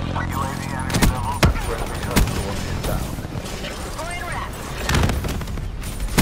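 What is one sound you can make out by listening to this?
Explosions boom with a heavy rumble.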